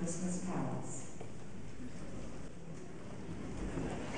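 An elderly woman speaks calmly through a microphone in a large echoing hall.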